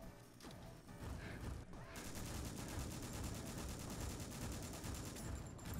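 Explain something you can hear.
A rifle fires in rapid bursts, with sharp echoing cracks.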